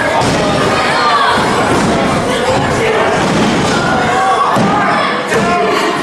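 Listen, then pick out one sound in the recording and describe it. Bodies thud onto a wrestling ring's mat.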